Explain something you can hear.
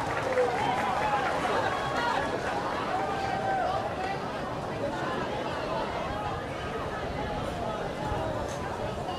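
A brass band plays loudly outdoors.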